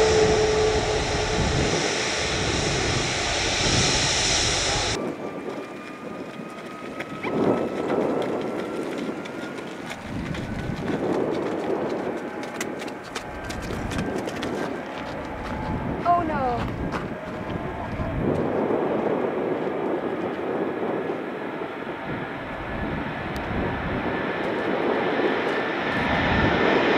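Jet engines roar steadily, growing louder toward the end.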